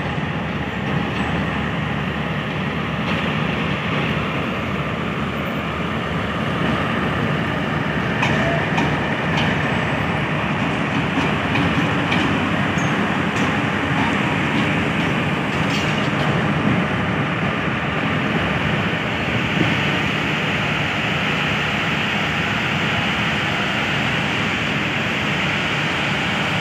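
A diesel locomotive engine rumbles steadily nearby.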